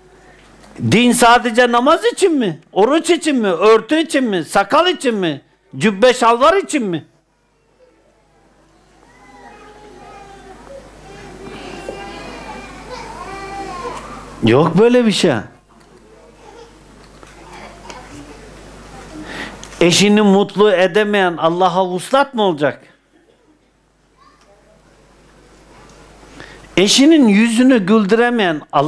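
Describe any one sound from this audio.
An elderly man speaks in loud, drawn-out bursts through a microphone, with quieter pauses between.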